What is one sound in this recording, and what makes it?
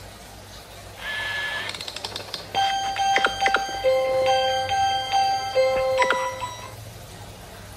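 Bright electronic tones chime from a small tablet speaker.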